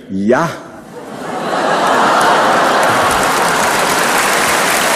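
An audience claps and applauds in a large hall.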